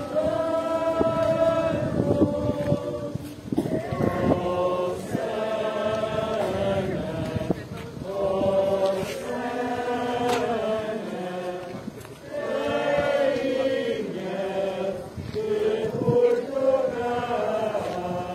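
A crowd of men and women sings a hymn together outdoors, close by.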